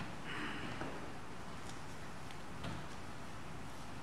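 A man sits down on a creaking wooden bench with a soft knock.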